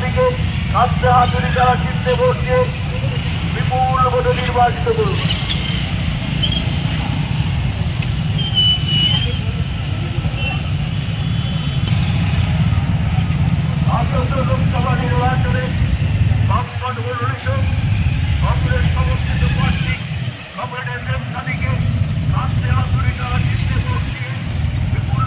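A crowd of men chants slogans loudly in unison.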